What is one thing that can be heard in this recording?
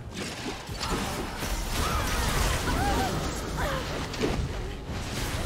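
Fantasy battle sound effects whoosh and crackle as spells are cast.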